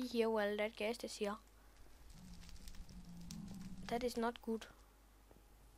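Fire crackles softly nearby.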